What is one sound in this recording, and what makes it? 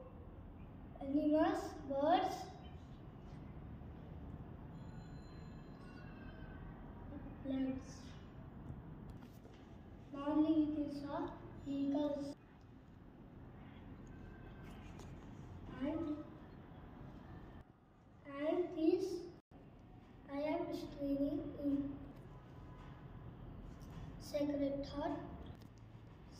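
A young boy speaks close by in short, careful phrases, with pauses between them.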